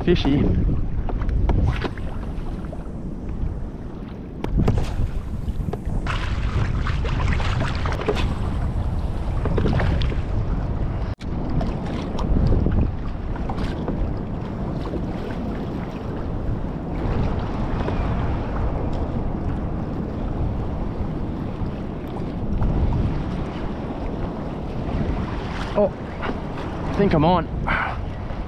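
Wind buffets loudly outdoors on open water.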